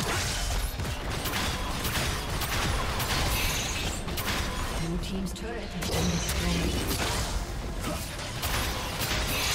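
Game spells and attacks crackle and burst in quick succession.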